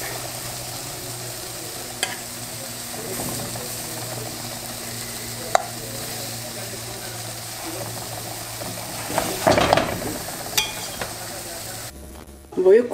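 Vegetables sizzle softly in a hot frying pan.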